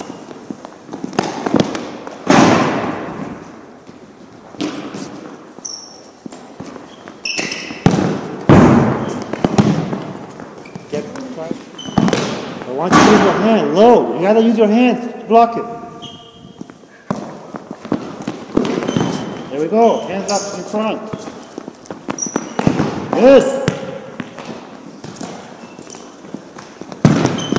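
A ball is kicked hard and thuds across a large echoing gym.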